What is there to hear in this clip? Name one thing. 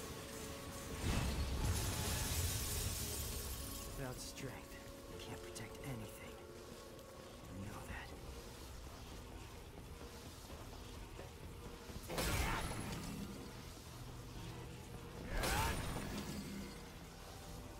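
Loud blasts boom and crackle, then fade.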